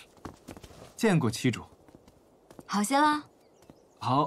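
A young woman speaks brightly, close by.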